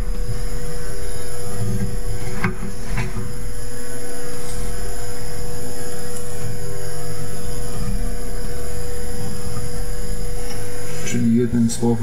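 A metal part clicks and scrapes as it is twisted into place.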